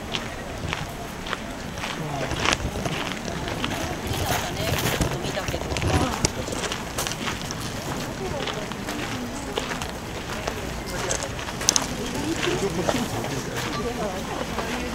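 A crowd of men and women chatter and murmur nearby outdoors.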